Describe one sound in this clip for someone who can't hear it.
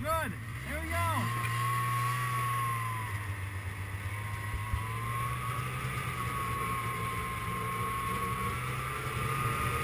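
A snowmobile engine hums steadily nearby.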